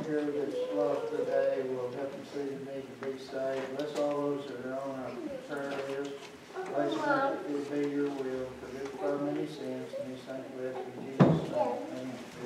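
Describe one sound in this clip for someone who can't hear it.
An elderly man speaks steadily through a microphone in a large room with a slight echo.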